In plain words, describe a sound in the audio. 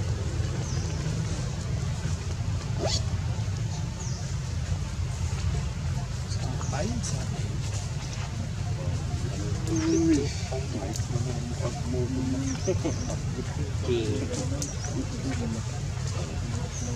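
A baby monkey suckles softly.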